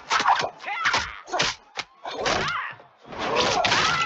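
Punches thud in a fast fistfight.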